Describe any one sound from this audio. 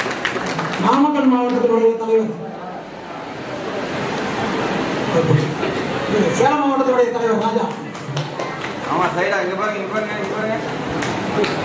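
A man speaks loudly and with animation in an echoing hall.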